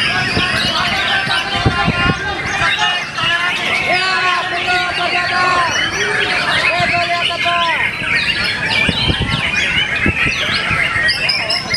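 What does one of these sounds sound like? A caged songbird sings a loud, rich, varied song of whistles and trills close by.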